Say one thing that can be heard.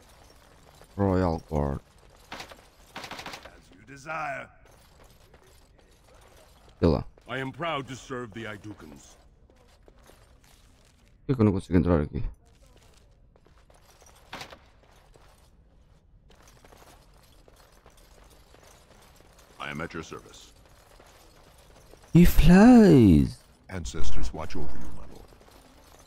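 A young man talks close to a microphone, in short bursts.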